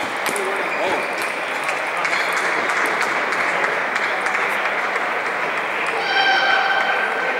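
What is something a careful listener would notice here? A crowd murmurs in the background of a large hall.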